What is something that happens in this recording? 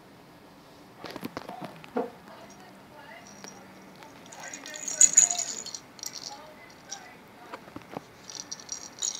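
A kitten scrabbles and rustles against soft fabric.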